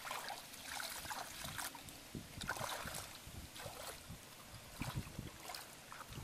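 Wet fish slap and rustle in a plastic basin.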